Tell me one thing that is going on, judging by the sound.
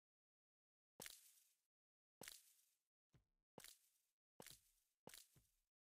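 Game sound effects pop and crack in quick bursts.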